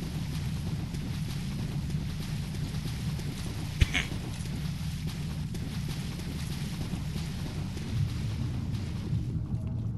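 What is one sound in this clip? A low, steady rumble fills a cavernous space.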